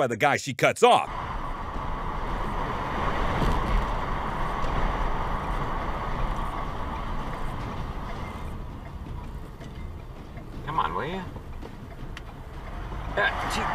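A car engine hums and tyres roll steadily on the road.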